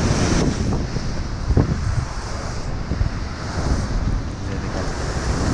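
Strong wind buffets loudly outdoors.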